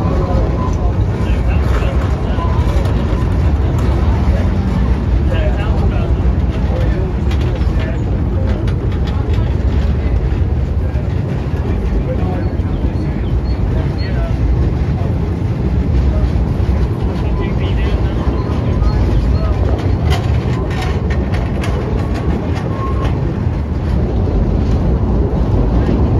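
A train rumbles and clatters steadily along a track.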